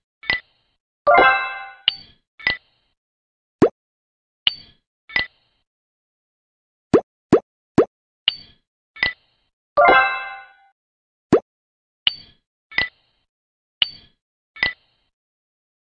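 Short bright clicks sound as dice drop into place.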